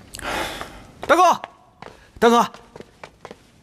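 A man speaks calmly and briefly.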